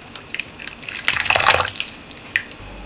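Liquid pours in a thin stream into a pot of broth.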